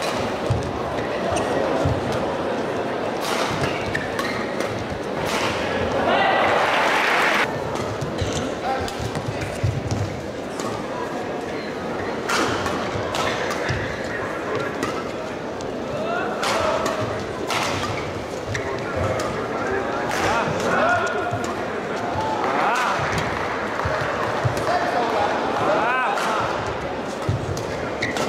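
Shuttlecocks are struck sharply with rackets.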